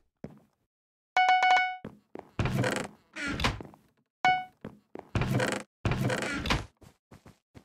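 Menu clicks chime with short tones.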